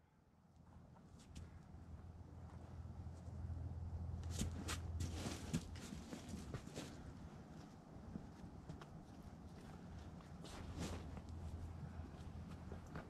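Hands and shoes scuff and scrape on rock.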